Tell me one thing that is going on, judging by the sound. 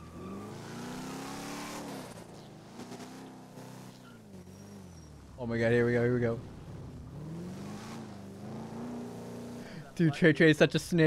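A car engine hums and revs as the car drives slowly.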